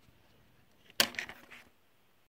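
A plastic mat slides and bumps against a board.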